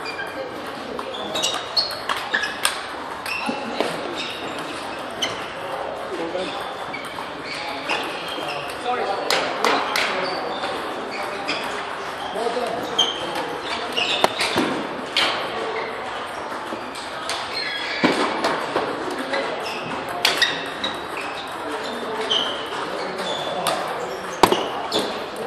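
Ping-pong balls click sharply on paddles and tables in a large echoing hall.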